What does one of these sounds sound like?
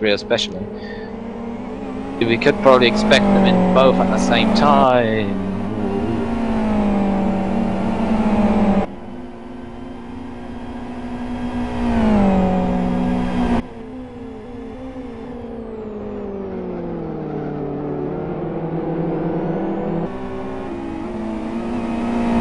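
A racing car engine roars loudly, its pitch rising and falling as it shifts gears.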